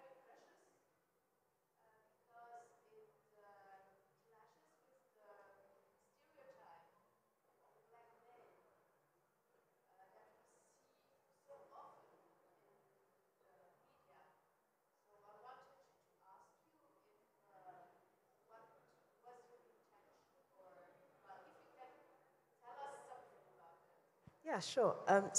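A woman speaks calmly and faintly from across a room.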